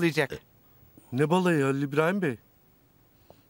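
A middle-aged man asks a question calmly.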